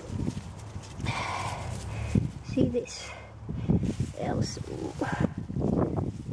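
Leaves rustle as a hand pushes through a plant.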